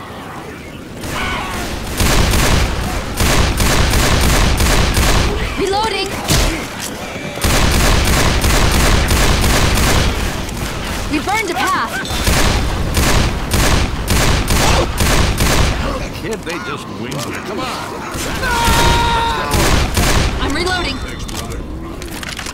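Gunfire cracks out in rapid bursts.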